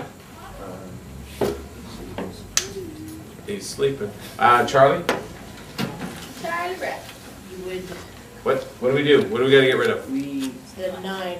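A man explains calmly, speaking nearby.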